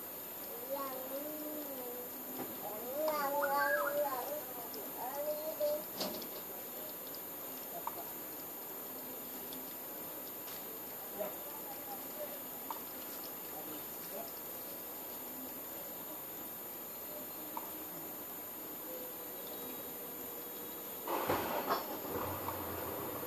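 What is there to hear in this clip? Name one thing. Wasps buzz softly around a nest.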